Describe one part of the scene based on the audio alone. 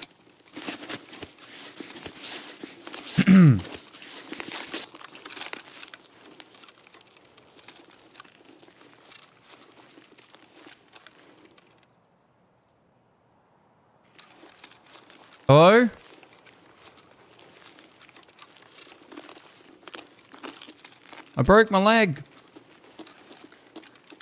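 Footsteps rustle quickly through grass and brush.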